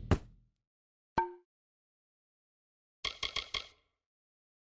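Short electronic menu clicks chime one after another.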